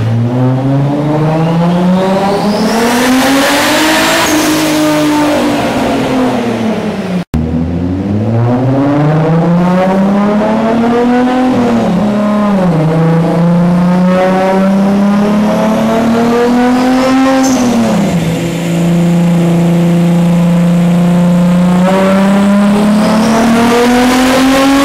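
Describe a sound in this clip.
A car engine revs hard and loud, rising and falling in pitch.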